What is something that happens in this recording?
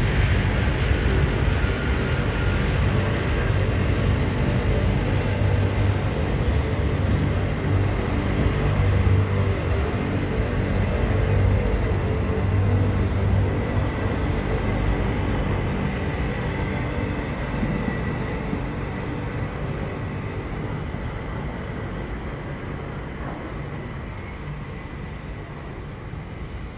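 A freight train rumbles past close by, its wheels clattering on the rails, then slowly fades into the distance.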